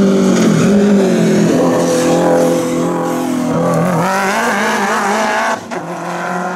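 A rally car engine roars loudly at high revs as it accelerates past.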